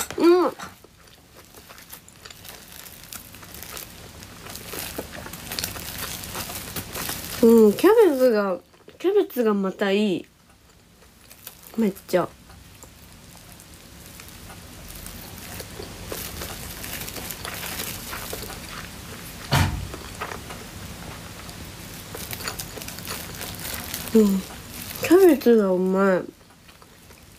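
A young woman speaks softly and close by, in short bursts.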